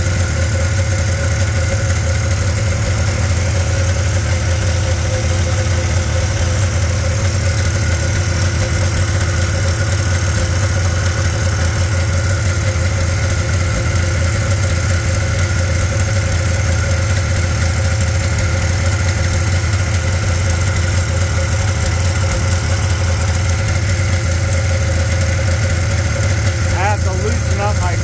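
An electric heater lamp hums steadily.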